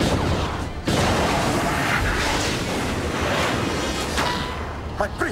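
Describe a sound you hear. A huge explosion booms and roars.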